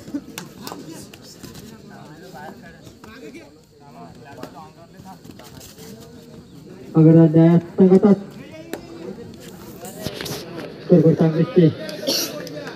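A crowd of people chatters and calls out outdoors.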